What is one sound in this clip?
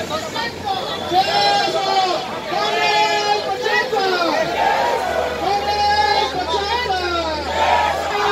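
A crowd of men and women chant slogans loudly in unison outdoors.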